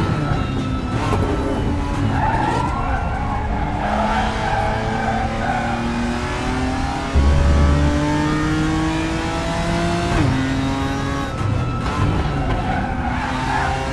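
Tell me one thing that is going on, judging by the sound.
Tyres screech through corners.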